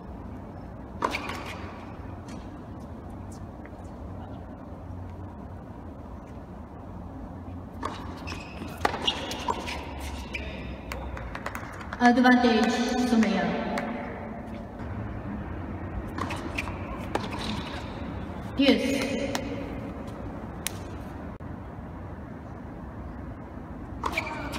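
A tennis ball is struck sharply by rackets, echoing in a large hall.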